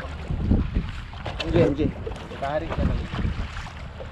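A fish splashes at the surface.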